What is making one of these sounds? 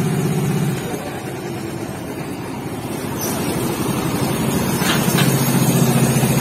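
Kart engines rise and fall as karts drive past.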